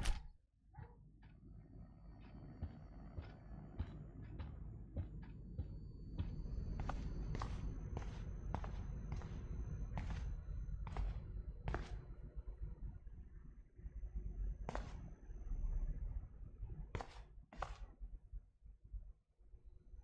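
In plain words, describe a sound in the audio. Footsteps thud on a wooden floor indoors.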